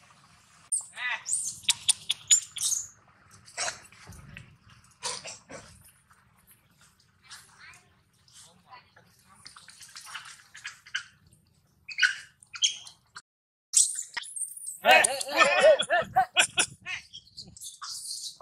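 A baby monkey squeals and cries.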